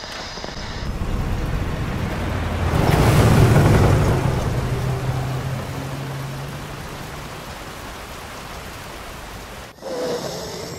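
A truck engine rumbles past in heavy rain.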